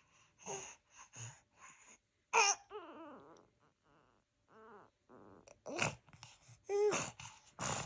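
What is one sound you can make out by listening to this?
A baby giggles close by.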